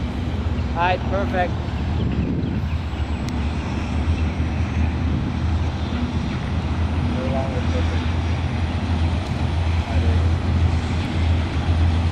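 Diesel locomotives rumble steadily as a freight train approaches.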